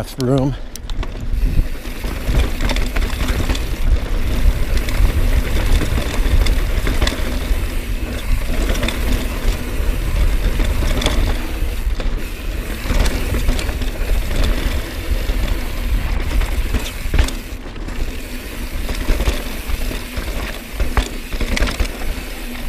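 Wind rumbles and buffets loudly past the rider.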